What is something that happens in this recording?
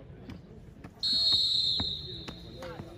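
A referee's whistle blows a short shrill blast.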